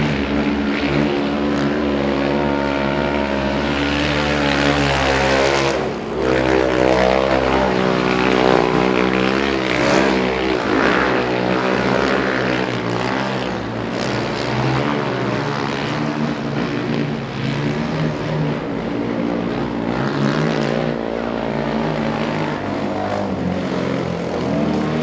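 A quad bike engine roars and revs loudly.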